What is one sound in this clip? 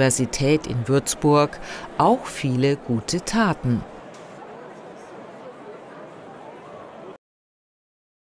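A large crowd chatters and murmurs in an echoing hall.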